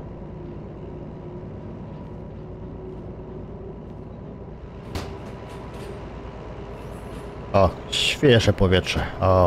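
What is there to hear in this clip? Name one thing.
A diesel engine idles with a steady low rumble.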